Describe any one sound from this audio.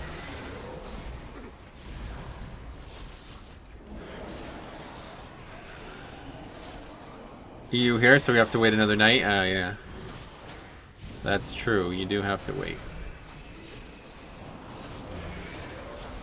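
Magic spells whoosh and crackle in a fast-paced battle.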